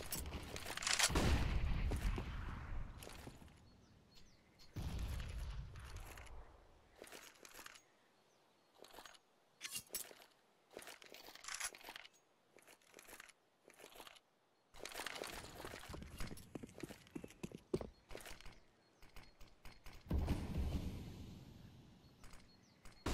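Grenades burst with loud, deep blasts that slowly fade.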